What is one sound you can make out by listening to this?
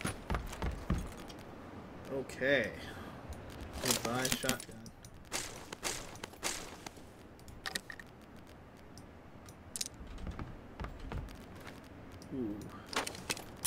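Short clicks and rustles sound as items are picked up in a video game.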